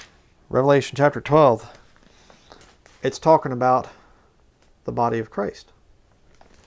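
A man speaks calmly and closely in short bursts.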